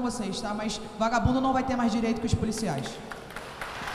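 A woman speaks with animation into a microphone in a large echoing hall.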